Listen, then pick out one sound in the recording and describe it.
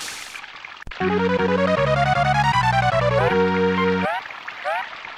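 A video game plays a loud, bright electronic jingle.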